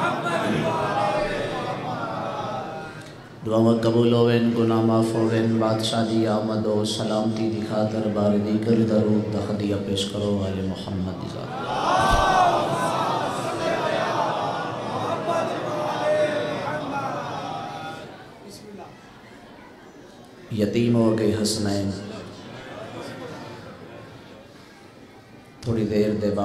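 A young man chants in long, held tones into a microphone, heard through loudspeakers with echo.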